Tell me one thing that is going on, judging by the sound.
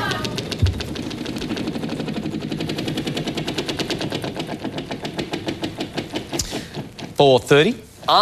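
A prize wheel spins with rapid clicking that gradually slows down.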